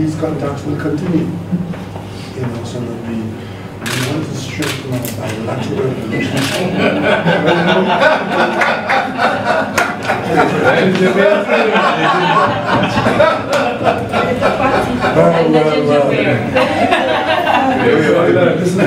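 Several men and women talk at once nearby, chattering.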